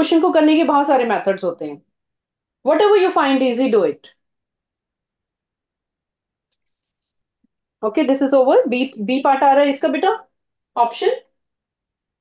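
A woman speaks calmly and clearly into a microphone, explaining with pauses.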